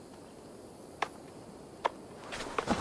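A wooden crate lid creaks open.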